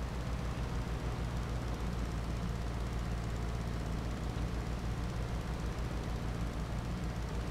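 A small engine runs steadily with a low hum.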